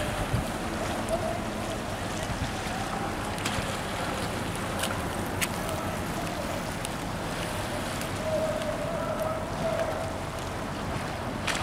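Small waves lap gently against a stone shore.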